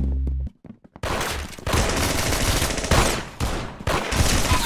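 A nail gun fires in rapid bursts.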